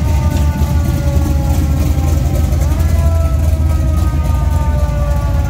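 A muscle car's engine idles with a deep, loud rumble close by.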